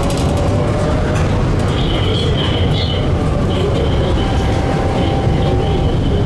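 A second tram rolls past close by.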